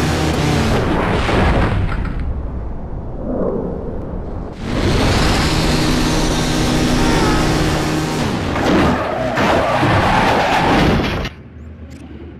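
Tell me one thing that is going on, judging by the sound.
A motorcycle engine roars at high revs.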